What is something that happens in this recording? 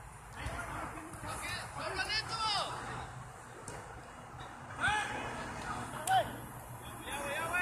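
Men shout to each other across an outdoor playing field.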